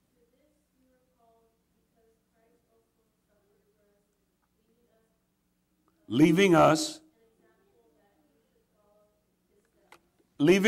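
A man speaks calmly through a microphone in a reverberant hall.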